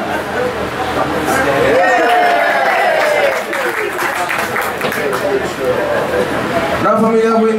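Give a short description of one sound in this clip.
A man speaks loudly and cheerfully.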